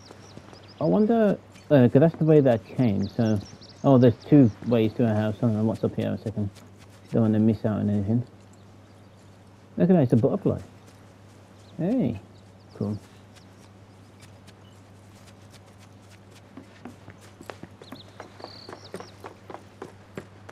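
Footsteps tread softly on a path.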